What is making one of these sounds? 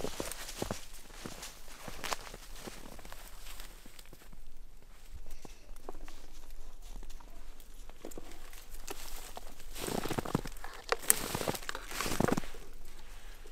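Dry twigs rustle and snap as a dog pushes through brush.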